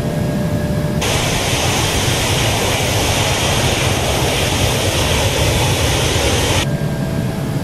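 Air rushes loudly past an aircraft wing.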